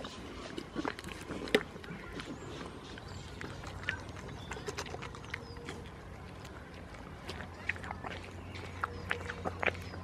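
A goat chews a juicy tomato with wet, crunching bites.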